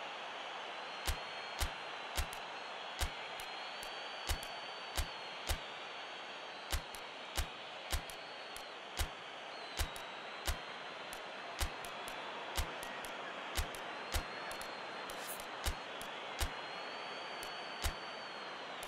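Soft electronic menu clicks tick one after another.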